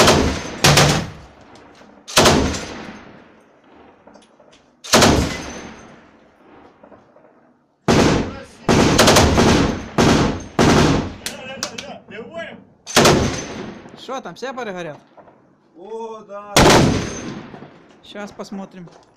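Gunshots crack loudly and echo off the walls.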